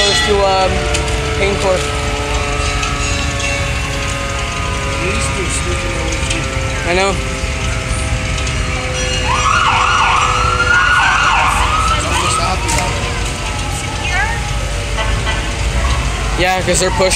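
Horns of fire engines blare.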